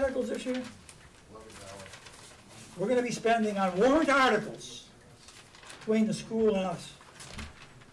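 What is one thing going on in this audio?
A man speaks calmly and slowly through a microphone, with pauses.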